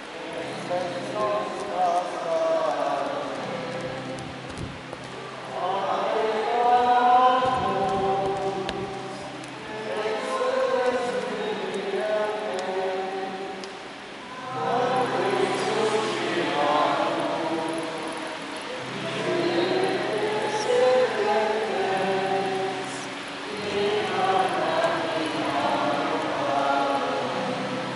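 A crowd of voices sings a slow hymn in phrases, echoing in a large hall.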